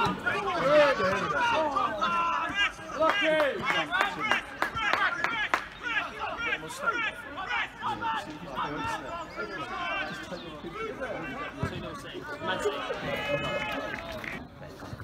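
Footballers shout to each other across an open pitch.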